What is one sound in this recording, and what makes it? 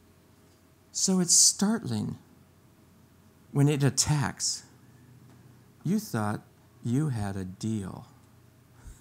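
An older man speaks calmly into a microphone in a large room.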